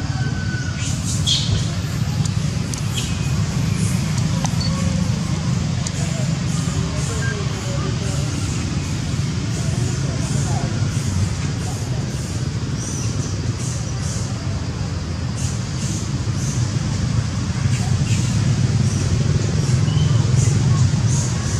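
A baby monkey squeaks softly nearby.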